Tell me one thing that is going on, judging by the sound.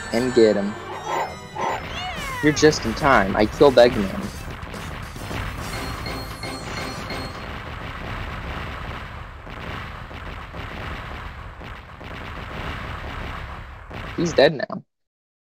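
Upbeat game music plays.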